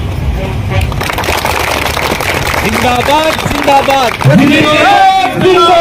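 A crowd of men shout slogans loudly in unison.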